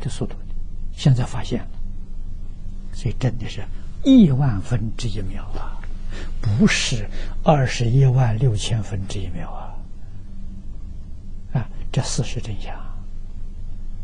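An elderly man speaks calmly and warmly into a microphone.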